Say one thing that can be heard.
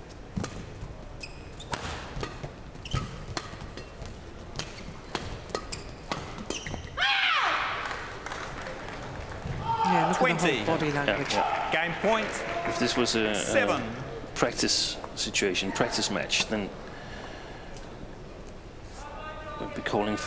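Badminton rackets strike a shuttlecock in a rally.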